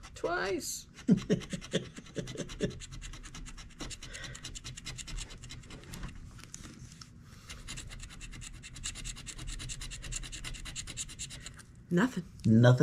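A coin scrapes rapidly across a scratch-off ticket.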